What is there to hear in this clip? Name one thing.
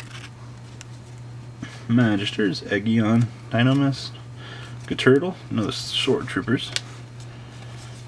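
Trading cards slide and flick against one another.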